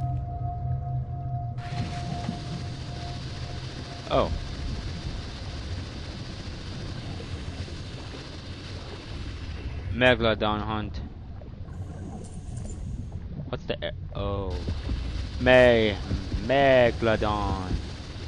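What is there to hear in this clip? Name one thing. An underwater scooter motor hums steadily.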